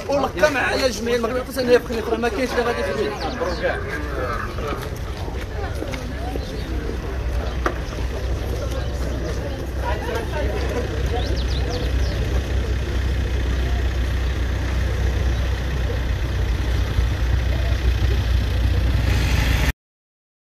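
A crowd of men talk and call out loudly close by, outdoors.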